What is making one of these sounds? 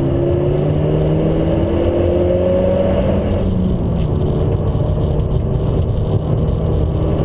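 A car engine roars loudly from inside the cabin, rising in pitch as it accelerates.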